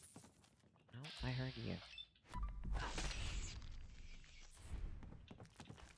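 A knife slashes and strikes a large insect with wet thuds.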